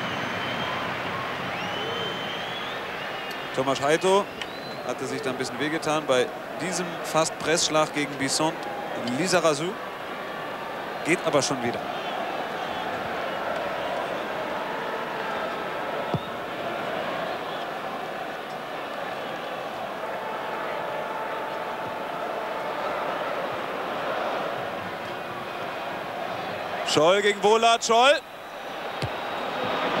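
A large stadium crowd murmurs and chants steadily in the open air.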